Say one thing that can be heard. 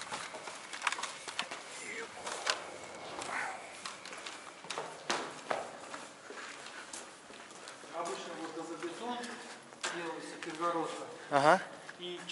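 Footsteps scuff on a concrete floor in an echoing corridor.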